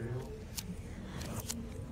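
Paper pages flip and rustle.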